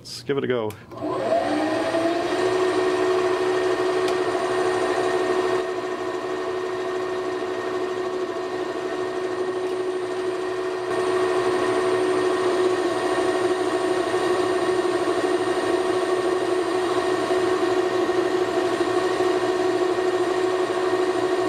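A lathe motor starts up and hums steadily with a whine.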